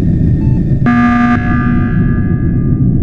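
An emergency alarm blares suddenly.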